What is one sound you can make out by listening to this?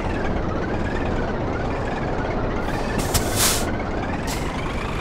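A truck's diesel engine rumbles steadily.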